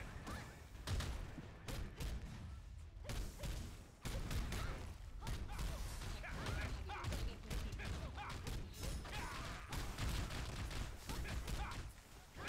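Explosions boom with crackling fire.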